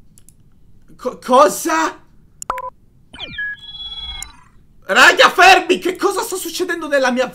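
A young man talks and laughs with animation, close to a microphone.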